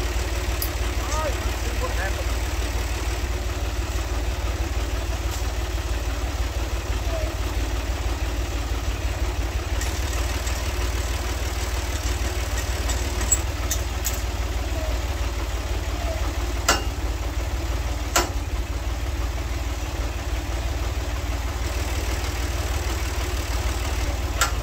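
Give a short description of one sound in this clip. A tractor engine idles with a steady low rumble.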